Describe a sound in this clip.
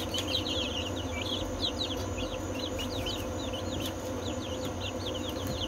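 Chicks peep rapidly and continuously, close by.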